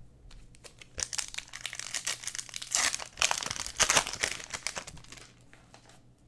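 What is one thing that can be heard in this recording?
A foil wrapper crinkles and tears close by.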